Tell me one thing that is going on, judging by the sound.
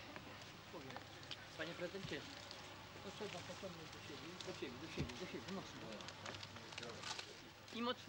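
A fabric ribbon rustles as a man ties it.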